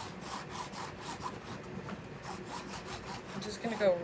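A crayon scrapes across a canvas.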